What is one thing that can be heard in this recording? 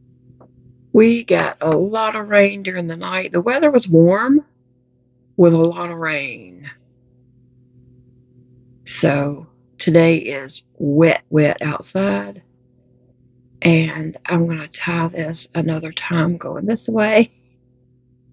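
An older woman talks calmly and closely into a microphone.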